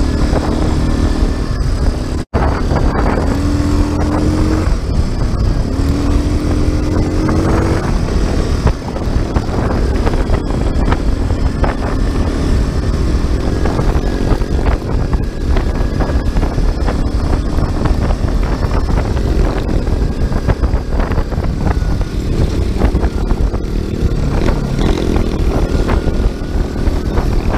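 Tyres rumble and crunch over a bumpy dirt track.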